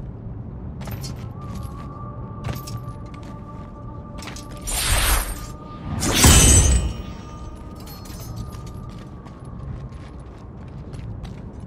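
Heavy footsteps thud and crunch on stone.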